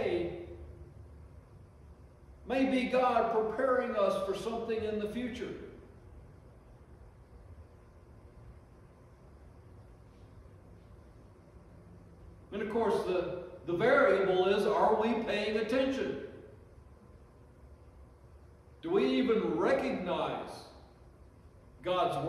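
An older man speaks slowly and forcefully into a microphone, with long pauses.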